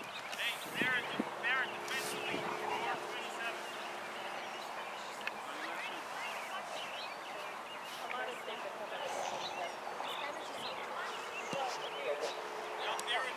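Teenage boys shout and call out across an open field, heard from a distance.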